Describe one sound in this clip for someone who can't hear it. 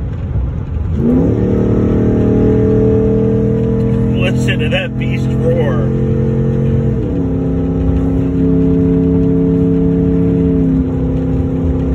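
A car engine revs up and then drones steadily.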